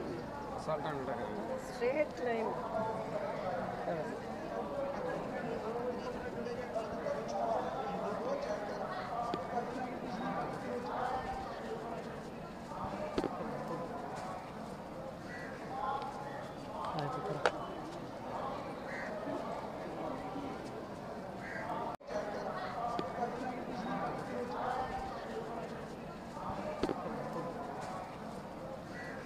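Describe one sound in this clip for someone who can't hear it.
Men and women talk nearby in a crowd outdoors.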